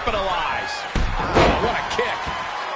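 A body slams hard onto a wrestling ring mat.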